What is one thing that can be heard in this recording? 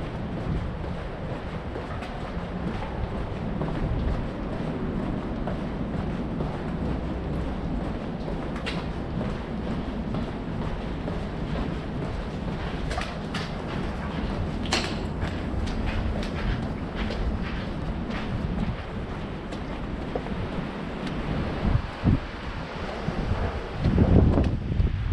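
Footsteps walk steadily on a hard floor in an echoing tunnel.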